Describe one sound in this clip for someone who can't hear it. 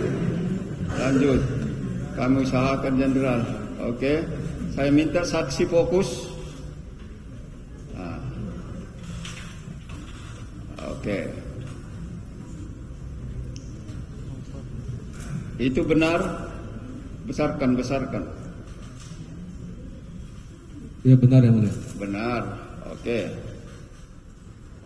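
A man speaks through a microphone in an echoing room.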